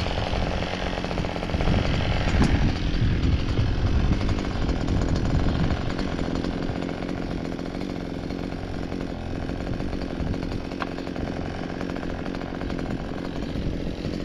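A string trimmer engine drones steadily, close by.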